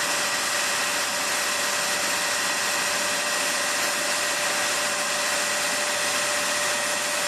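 A machine hums and whirs steadily with a high whine.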